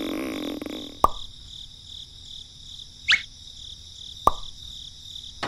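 Small toy tyres knock onto a wooden toy cart.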